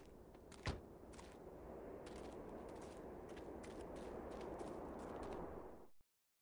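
Footsteps crunch on dry sandy ground.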